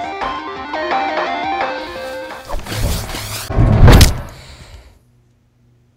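Game music plays with a bright melody.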